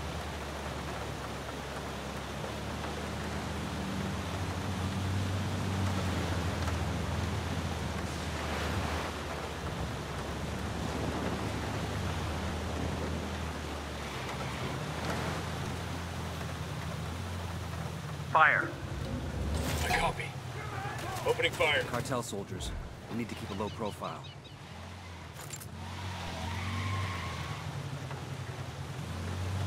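A van engine hums steadily as the van drives along.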